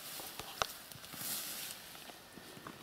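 Boots tread and shuffle on soft soil close by.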